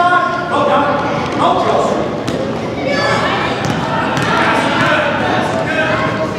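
Voices of children and adults shout and call out in a large echoing hall.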